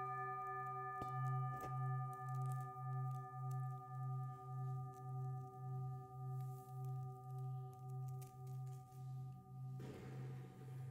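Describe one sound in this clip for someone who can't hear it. A singing bowl is rubbed so its tone swells and pulses steadily.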